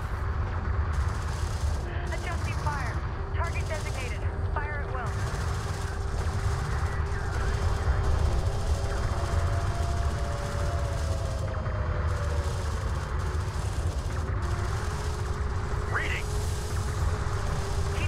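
Science-fiction weapons fire in a video game battle.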